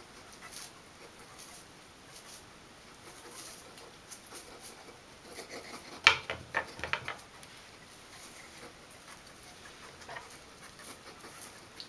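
A toothbrush scrubs softly against a hedgehog's quills.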